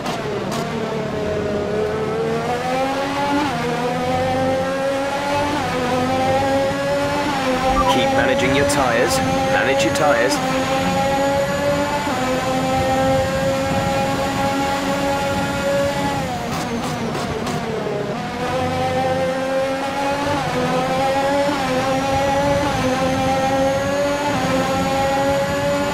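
A racing car engine screams, rising in pitch through each gear and dropping sharply when braking.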